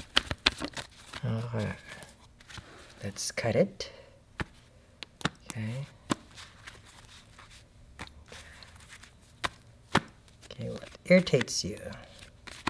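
Playing cards shuffle, slide and tap softly onto a cloth.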